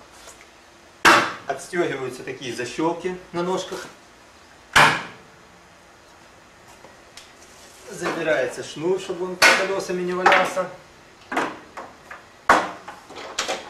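Wooden parts knock and clunk sharply.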